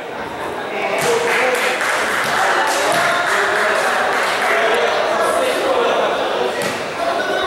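A crowd of young men shout and cheer, echoing in a large covered court.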